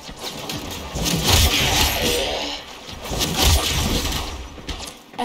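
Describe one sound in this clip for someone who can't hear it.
Heavy blasts crash loudly.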